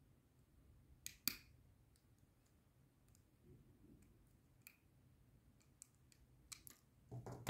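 Metal pliers click against a small metal plug.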